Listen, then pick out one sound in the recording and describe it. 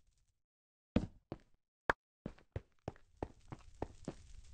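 A pickaxe taps and breaks blocks in quick repeated knocks.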